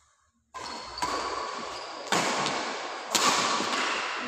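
A badminton racket strikes a shuttlecock in an echoing hall.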